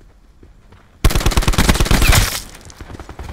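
An automatic rifle fires a rapid, loud burst.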